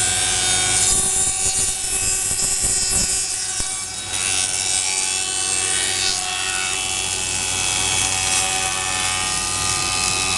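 Feed rollers rumble as a wooden strip passes through a machine.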